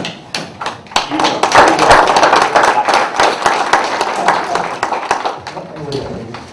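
People in a room applaud loudly.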